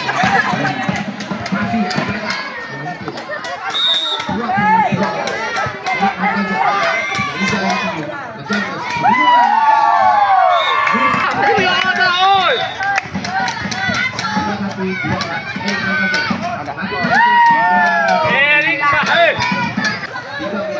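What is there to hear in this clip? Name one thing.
A crowd of spectators chatters and shouts outdoors.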